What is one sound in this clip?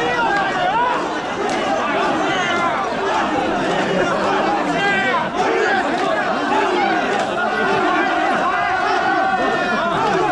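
A large crowd of men chants and shouts rhythmically close by, outdoors.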